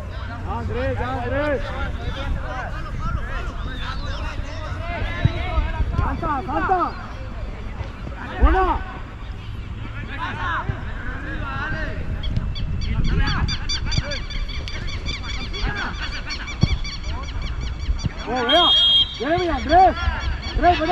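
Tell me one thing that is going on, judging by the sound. Young players shout and call to each other outdoors.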